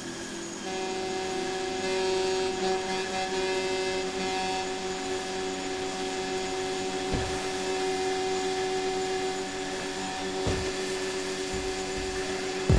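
A boat's hull splashes and hisses through choppy water.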